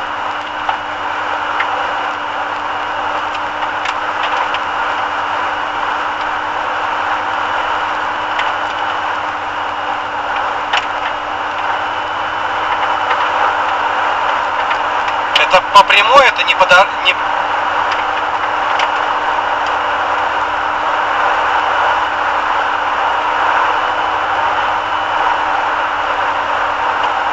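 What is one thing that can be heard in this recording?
Tyres hum steadily on the road inside a moving car.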